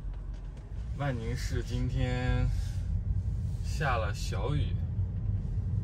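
A young man speaks calmly close by inside a car.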